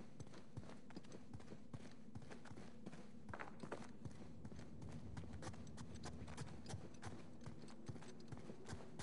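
Footsteps run quickly on stone.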